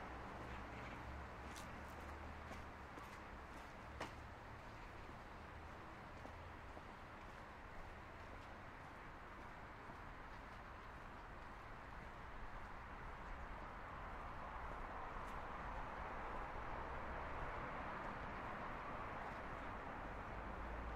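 Footsteps crunch softly on a dirt path.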